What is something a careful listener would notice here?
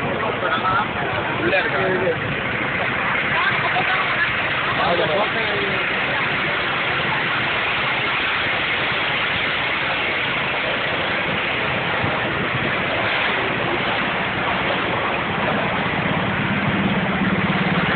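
A crowd of men and women talk loudly all at once outdoors.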